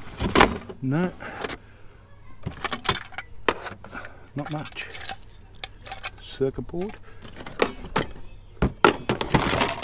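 Hard plastic objects clatter and rattle in a cardboard box.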